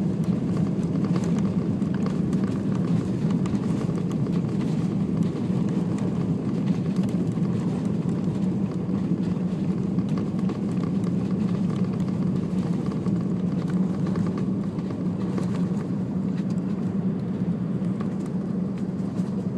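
A jet airliner's engines roar steadily as it taxis fast along the runway, heard from inside the cabin.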